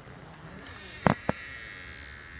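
A door latch clicks as a doorknob turns.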